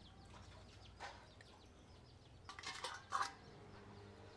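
Pieces of food clatter and knock against a metal plate.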